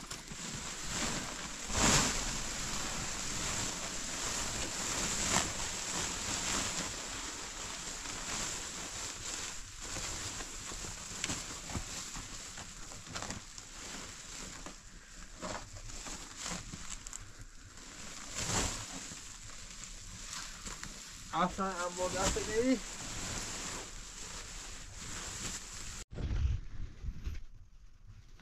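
A plastic tarp rustles and crinkles as it is pulled and folded.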